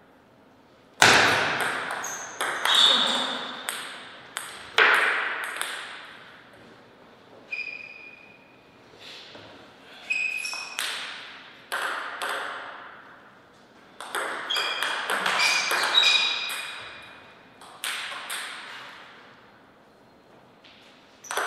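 A table tennis ball clicks back and forth off paddles and the table in an echoing hall.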